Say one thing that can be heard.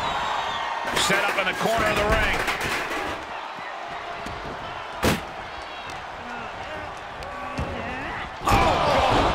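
Heavy thuds of bodies slam onto a wrestling ring mat.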